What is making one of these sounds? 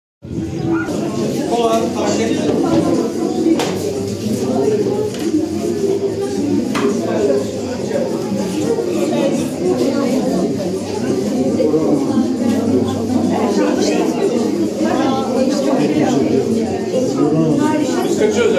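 A crowd of people chatter in a room.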